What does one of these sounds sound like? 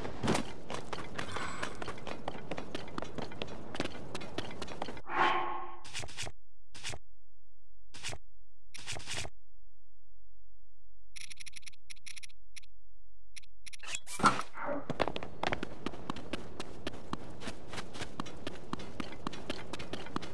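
Footsteps crunch on gravel as a game character runs.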